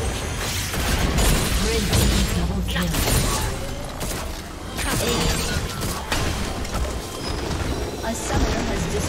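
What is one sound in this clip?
Game spells crackle and blast in a busy fight.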